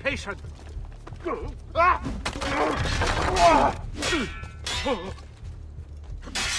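Swords clash and strike in a fight.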